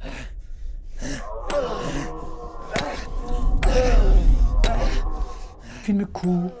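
A man grunts and breathes hard with effort.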